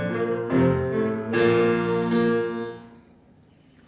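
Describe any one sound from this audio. A small ensemble of flutes and keyboard plays a sustained final chord.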